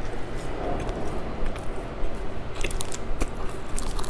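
Plastic wrappers crinkle close to a microphone.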